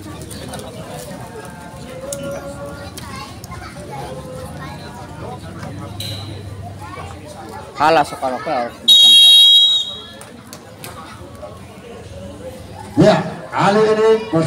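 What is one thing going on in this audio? A crowd of young women and girls chatters outdoors.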